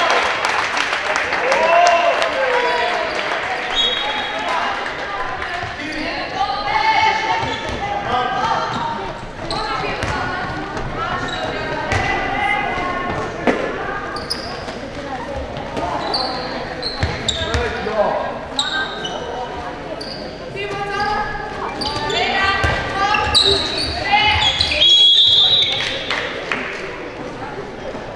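Young girls shout and call out to each other across a large echoing hall.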